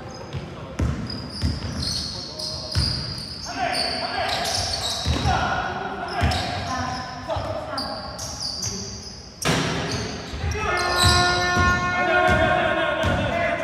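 A basketball bounces on a hard floor in an echoing hall.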